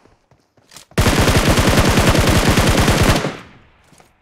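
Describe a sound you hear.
A rifle fires a long rapid burst of shots.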